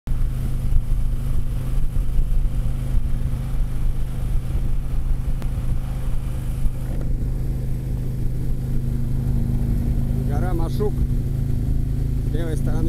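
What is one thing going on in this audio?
Wind rushes past a moving motorcycle.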